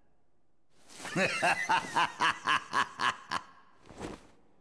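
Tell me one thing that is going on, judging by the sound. A man laughs loudly and wildly.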